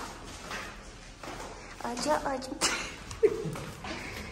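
Footsteps thud down a staircase.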